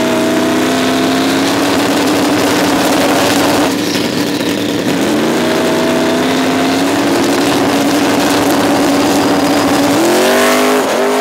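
A drag racing car's engine revs loudly on the start line.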